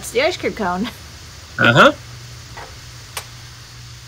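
A metal valve handle turns with a creak.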